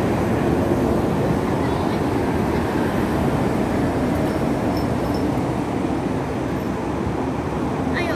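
Tyres roar on a road.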